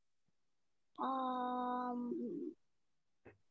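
A child speaks in a long, drawn-out voice over an online call.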